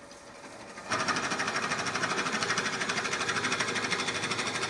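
A drill bit bores into spinning wood.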